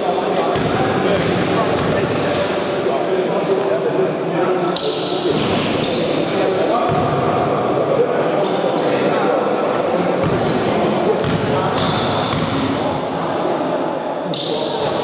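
Young men call out to each other in an echoing hall.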